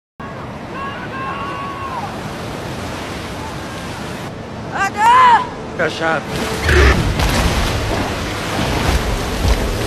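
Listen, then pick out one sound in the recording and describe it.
Waves crash on a rocky shore.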